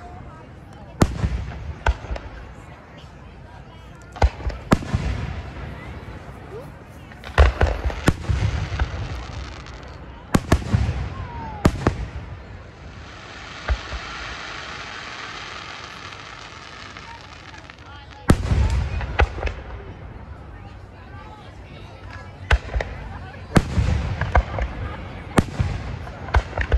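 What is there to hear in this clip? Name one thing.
Aerial firework shells burst with booming bangs, echoing outdoors.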